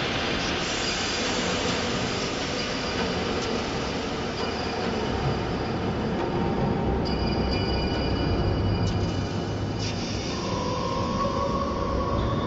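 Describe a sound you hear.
Wind buffets and rumbles steadily outdoors.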